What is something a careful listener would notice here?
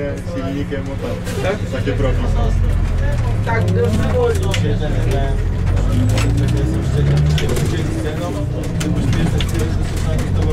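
A car engine hums steadily with a low rumble.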